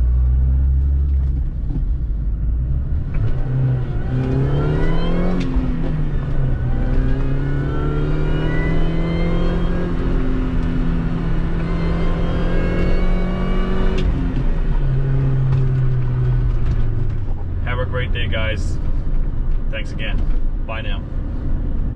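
A small car engine hums and revs up as the car accelerates through the gears.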